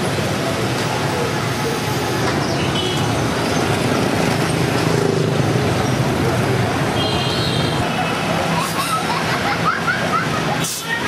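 Motorbike engines hum and buzz steadily in busy street traffic.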